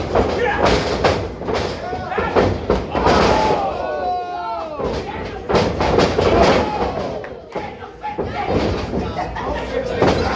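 A man shouts loudly nearby in an echoing hall.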